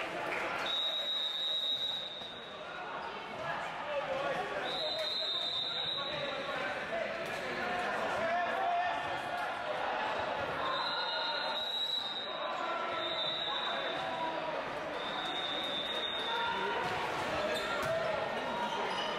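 A volleyball is struck with sharp slaps in a large echoing hall.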